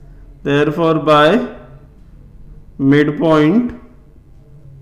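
A man speaks calmly and clearly in short phrases, close by.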